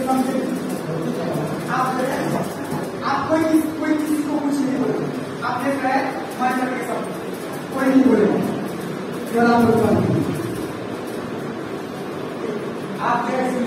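A young man reads out aloud in a room with some echo.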